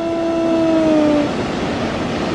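A train sounds a two-tone horn as it approaches.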